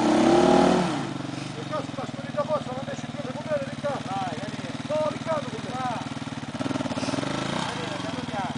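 A motorcycle engine putters steadily at low speed.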